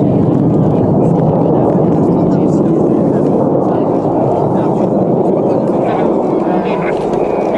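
Jet aircraft roar overhead in a loud, steady rumble.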